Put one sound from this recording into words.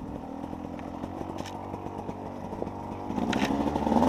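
Branches scrape and snap against a dirt bike.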